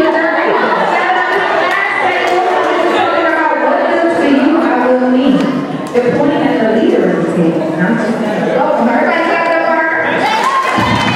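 A young man speaks into a microphone over a loudspeaker in an echoing hall.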